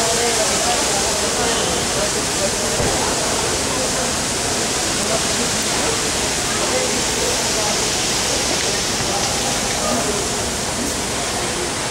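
Car engines idle steadily.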